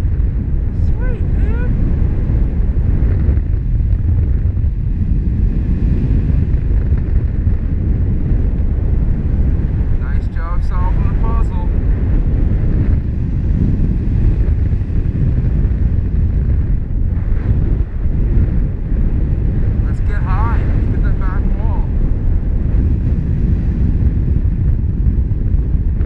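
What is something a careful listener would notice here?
Wind roars steadily and loudly past the microphone, high in the open air.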